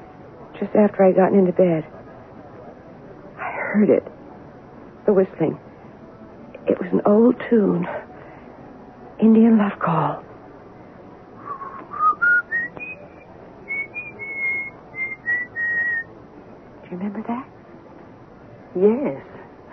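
A man speaks dramatically, as if over an old radio.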